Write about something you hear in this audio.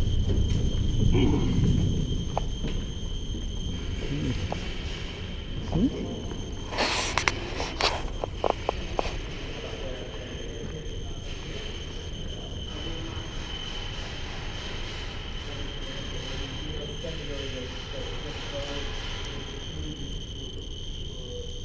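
Footsteps echo on a hard floor in a large, echoing space.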